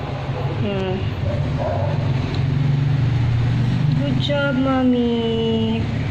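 Newborn puppies whine and squeak in high, wavering cries.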